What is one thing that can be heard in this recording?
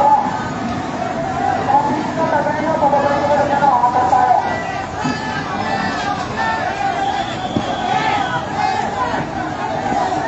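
A crowd of men and women shout excitedly outdoors.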